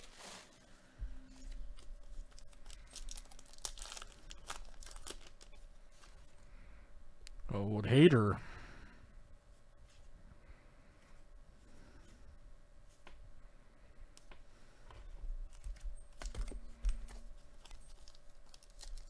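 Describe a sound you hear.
A foil wrapper crinkles and tears as hands open a pack of cards.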